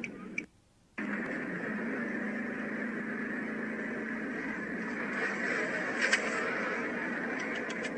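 Cars speed past on a highway with a steady roar.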